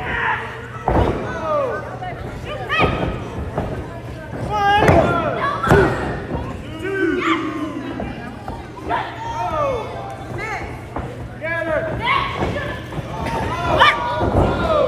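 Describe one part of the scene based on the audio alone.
Bodies thud heavily onto a wrestling ring mat.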